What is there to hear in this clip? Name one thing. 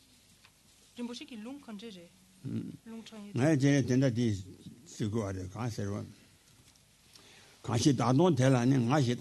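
An elderly man chants in a low voice through a microphone.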